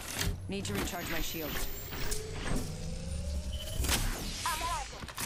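A device whirs and hums as it charges.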